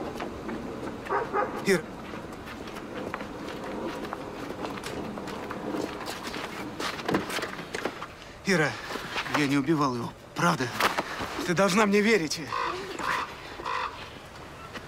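A young man calls out and pleads urgently.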